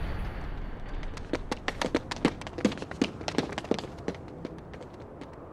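Light footsteps patter quickly across a hard floor.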